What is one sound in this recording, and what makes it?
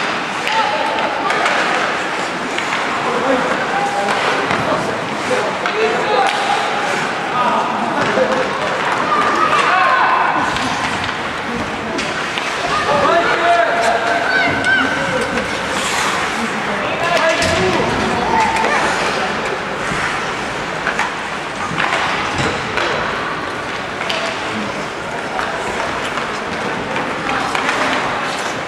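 Young players shout to each other across an echoing rink.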